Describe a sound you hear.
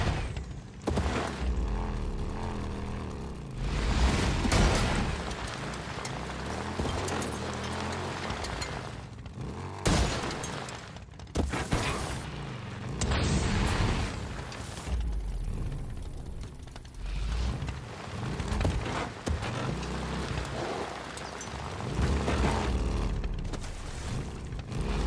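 A motorcycle engine roars and revs up and down.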